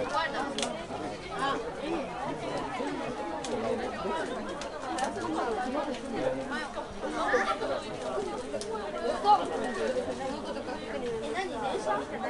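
Several young people talk and call out at once.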